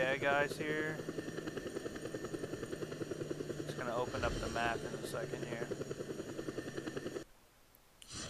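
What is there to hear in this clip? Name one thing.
A helicopter's rotor thumps steadily nearby.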